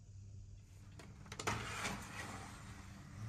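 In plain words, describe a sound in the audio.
A sliding door clicks and rumbles open.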